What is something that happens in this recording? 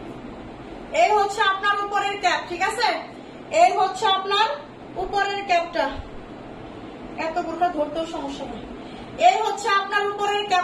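A young woman talks with animation close by.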